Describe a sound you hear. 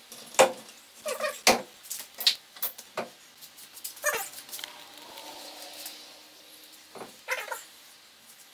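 Metal car parts clank and knock close by.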